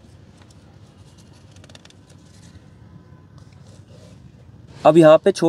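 A paper backing peels off a sticker with soft crinkling.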